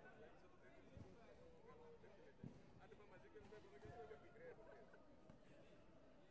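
Kicks thud against body padding in a large echoing hall.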